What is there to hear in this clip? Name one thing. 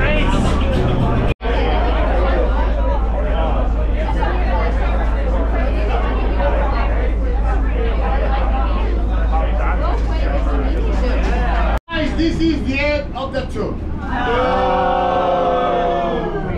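Men and women chatter nearby in a lively crowd.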